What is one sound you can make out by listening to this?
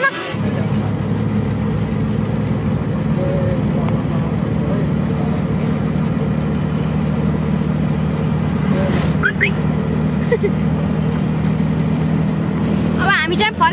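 A diesel engine drones steadily inside a moving vehicle.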